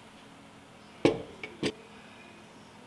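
A pot is set down on a wooden table with a knock.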